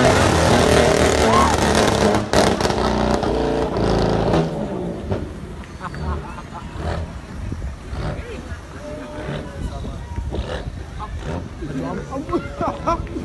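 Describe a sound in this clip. A sports car engine revs loudly and rumbles up close.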